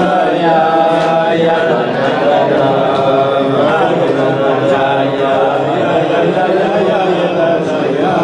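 An elderly man sings a slow melody nearby.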